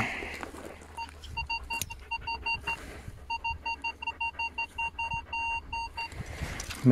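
A metal detector beeps in quick, even pulses.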